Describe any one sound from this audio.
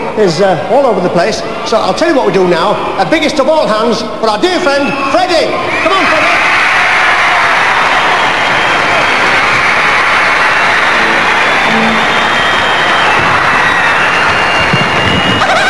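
A large crowd screams and shrieks loudly in a big echoing hall.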